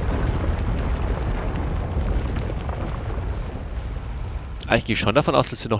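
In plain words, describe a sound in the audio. A deep rumble rolls as rock crumbles and dust settles.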